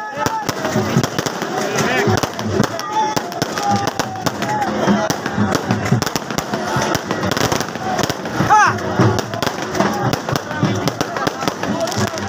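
Fireworks pop and crackle overhead.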